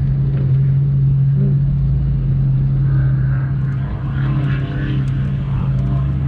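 An SUV drives past over sand.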